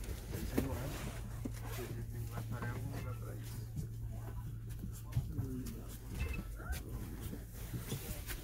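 A man talks nearby in a muffled voice.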